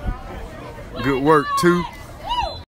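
Young girls cheer and shout loudly nearby.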